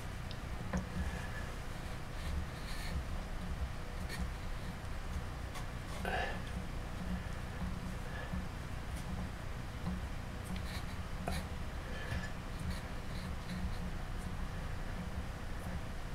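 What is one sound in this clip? Hands rub and handle a small clay figure.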